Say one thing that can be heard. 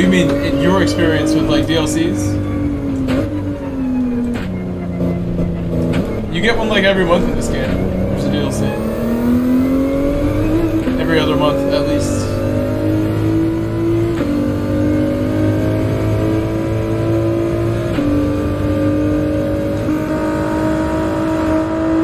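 A race car engine revs and whines, rising and dropping in pitch as the gears shift.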